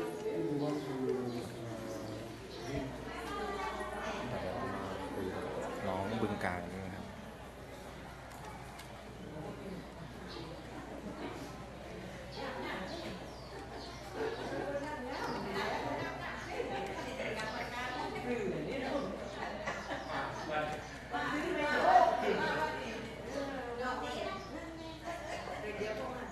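Several young women chat and murmur nearby.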